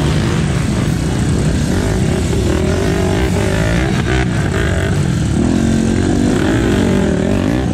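Motorcycle wheels spin and churn in mud.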